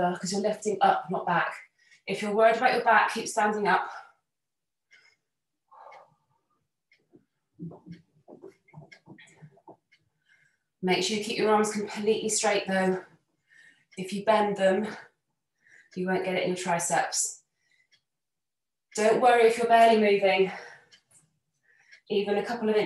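A woman speaks calmly and clearly, close to a microphone.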